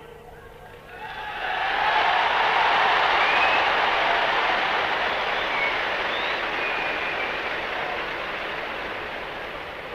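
A huge crowd cheers and applauds loudly.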